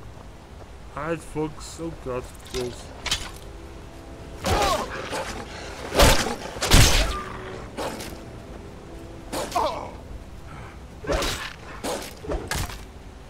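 A wolf snarls and growls up close.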